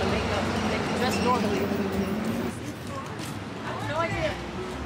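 A young woman speaks casually close by.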